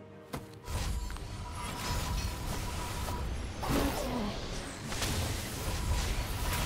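Video game combat sounds of spells and hits crackle and burst.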